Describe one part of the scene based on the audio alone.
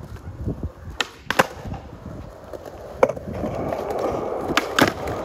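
A skateboard clacks sharply against concrete.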